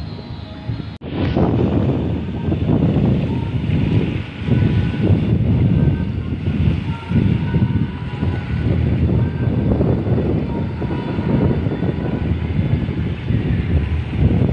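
Wind gusts over open water and buffets the microphone.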